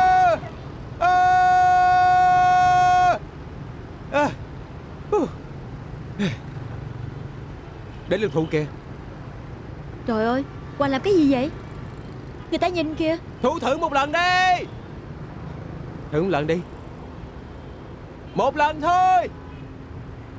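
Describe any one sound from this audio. A young man shouts loudly with long, drawn-out calls.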